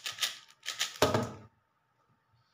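A plastic puzzle cube is set down on a table with a thump.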